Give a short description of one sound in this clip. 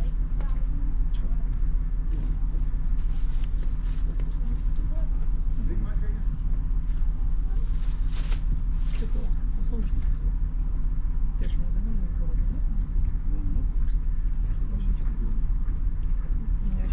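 Wind blows across the deck outdoors.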